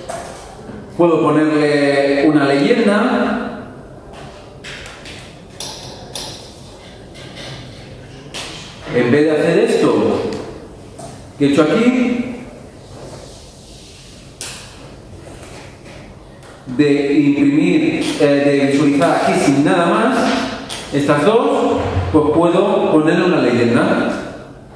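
A man speaks calmly into a microphone in a large room, in short bursts with pauses.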